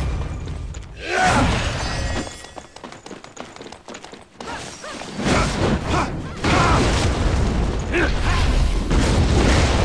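Blades swoosh in quick, sharp slashes.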